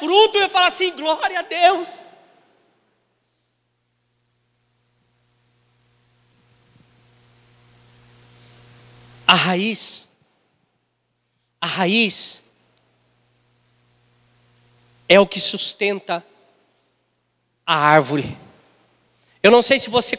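A middle-aged man speaks with animation through a microphone in an echoing hall, pausing often.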